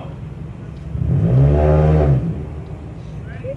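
A car engine briefly revs up and falls back.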